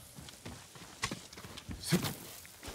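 Footsteps scuff on rock.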